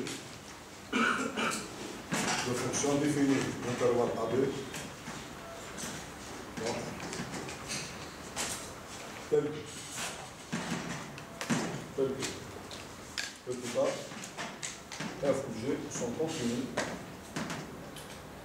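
A man speaks calmly, as if lecturing, in a room with some echo.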